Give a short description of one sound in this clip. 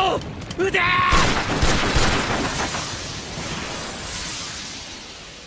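A flare gun fires with a sharp bang and a hissing whoosh.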